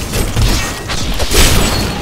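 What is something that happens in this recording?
A lightning bolt cracks down with a loud burst.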